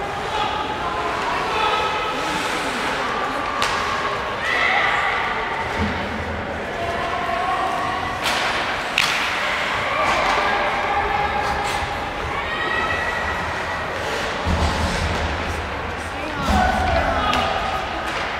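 Spectators talk and call out nearby in a large echoing rink.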